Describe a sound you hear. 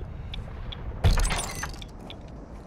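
A wooden door bangs open.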